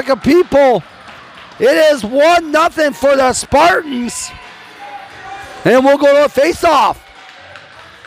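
Young players shout and cheer loudly close by.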